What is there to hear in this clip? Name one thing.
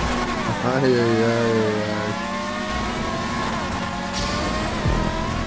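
Racing car engines whine loudly at high revs, shifting pitch as gears change.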